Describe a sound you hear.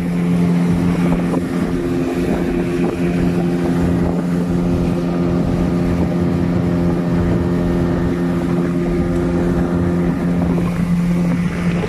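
A boat engine drones steadily at high speed.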